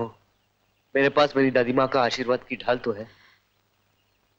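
A man speaks quietly in reply.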